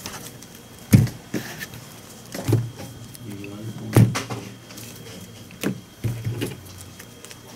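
Cards tap down on a table.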